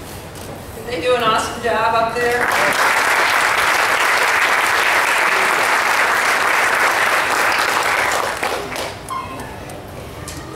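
An older woman speaks into a microphone over a loudspeaker in a large hall.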